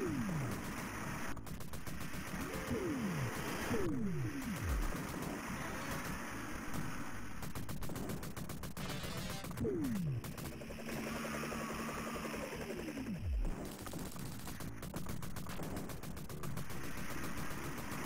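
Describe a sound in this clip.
Video game gunfire rattles rapidly.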